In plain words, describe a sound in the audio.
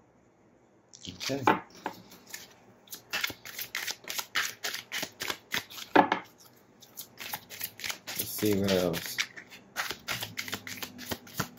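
Playing cards are shuffled by hand, riffling and flapping.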